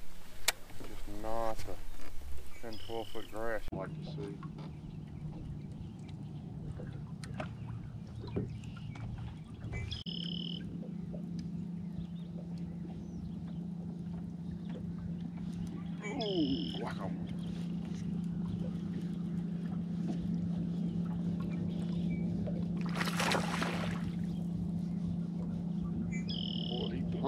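A fishing reel whirs as a man winds in line.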